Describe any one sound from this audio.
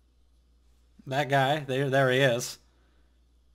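A young man speaks briefly and with animation, close to the microphone.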